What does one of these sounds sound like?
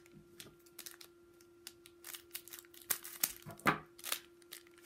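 Scissors snip through a foil wrapper.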